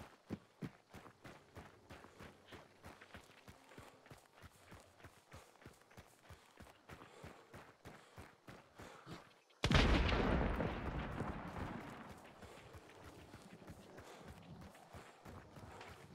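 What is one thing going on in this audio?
Footsteps crunch steadily over dirt and dry grass.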